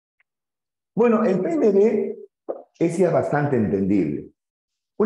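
A man speaks loudly and clearly into a close microphone.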